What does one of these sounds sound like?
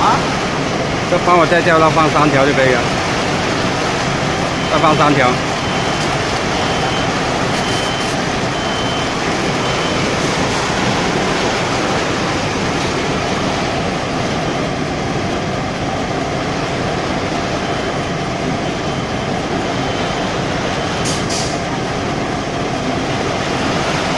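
A packaging machine hums and whirs steadily.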